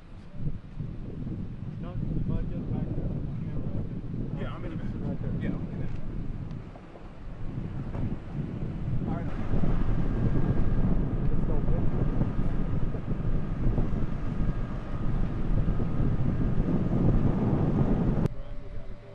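Strong wind gusts and rumbles outdoors.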